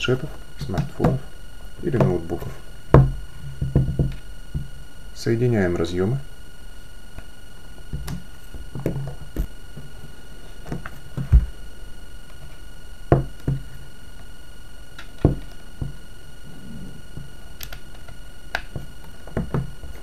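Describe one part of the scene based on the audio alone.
Cables and small plastic devices knock and clatter on a table.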